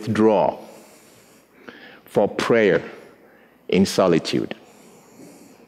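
A man speaks with animation through a microphone in a reverberant hall, in short bursts.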